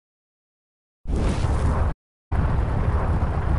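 A spaceship roars loudly as it rushes through a warp jump.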